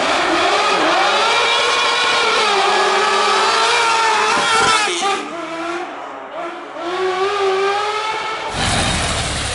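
A racing buggy's engine revs hard and roars past.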